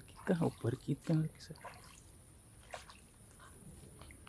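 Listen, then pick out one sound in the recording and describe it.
A man's boots slosh through shallow water.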